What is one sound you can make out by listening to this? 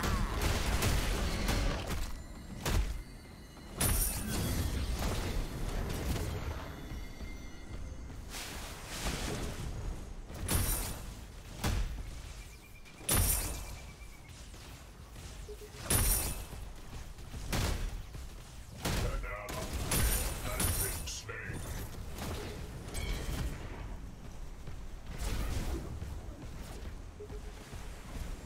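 Heavy mechanical footsteps stomp and clank.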